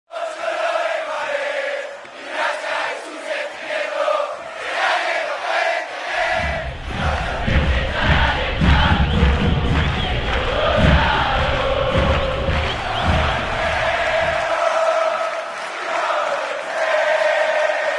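A large crowd sings and chants loudly in an open stadium.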